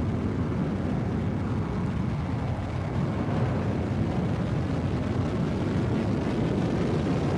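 A spacecraft's engines roar steadily as it flies.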